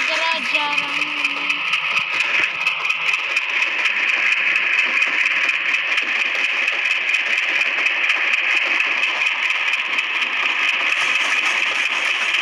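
A train locomotive rumbles steadily along the rails.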